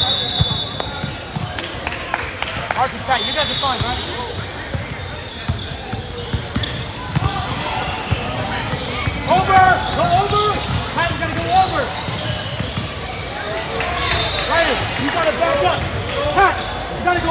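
Children and adults shout and chatter in a large echoing hall.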